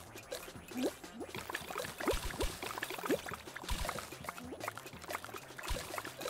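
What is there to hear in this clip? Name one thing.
Cartoonish game sound effects chirp and boing.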